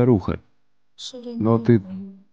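A young woman speaks softly and upset.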